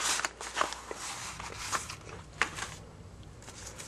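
Playing cards rustle and flick as a stack is handled up close.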